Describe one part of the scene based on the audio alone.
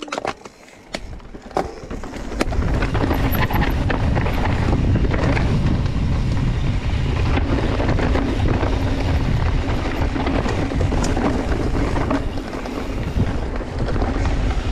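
A mountain bike rattles over bumps on the trail.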